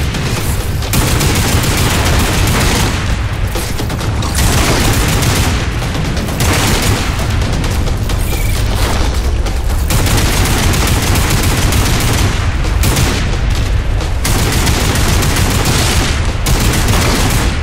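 A rapid-fire gun fires long bursts of shots.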